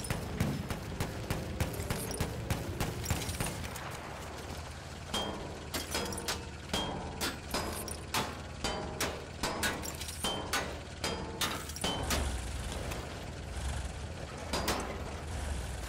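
A heavy armoured car engine rumbles nearby.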